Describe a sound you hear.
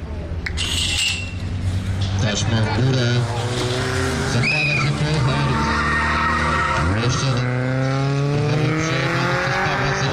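Bicycle tyres crunch on a dirt track as riders race off.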